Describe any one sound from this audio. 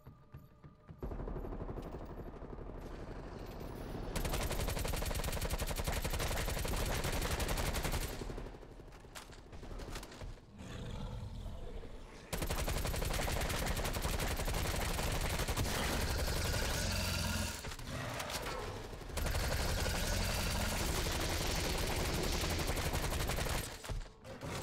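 Guns fire rapidly in a loud, noisy battle.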